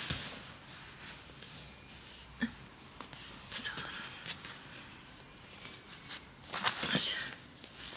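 Fabric rustles as a baby's clothes are pulled on.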